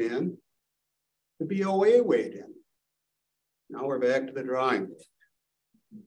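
A man speaks in short phrases, heard through a microphone.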